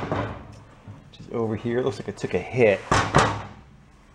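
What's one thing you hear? A heavy metal gearbox clunks as hands shift it on a bench.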